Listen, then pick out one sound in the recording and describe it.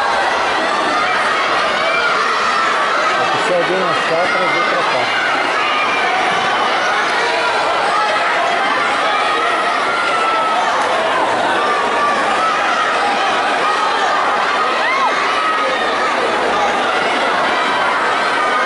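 A large crowd of children chatters and calls out, echoing in a big hall.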